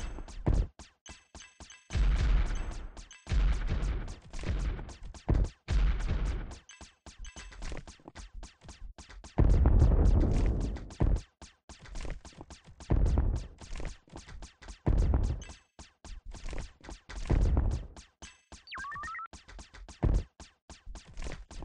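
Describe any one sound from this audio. Laser shots fire rapidly in a steady stream.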